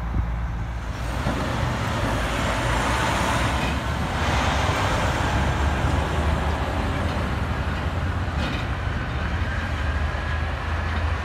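A truck's diesel engine rumbles close by.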